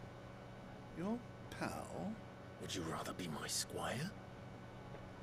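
A man asks questions in a dry, mocking tone.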